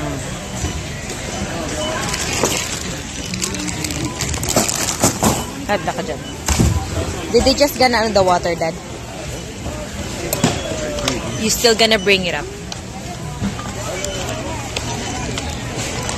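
Boxes thump down onto a checkout belt.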